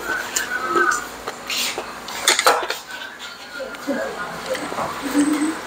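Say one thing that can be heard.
A young man chews with smacking sounds close to a microphone.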